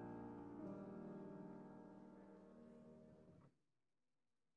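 A piano plays a final chord that slowly fades and then stops abruptly.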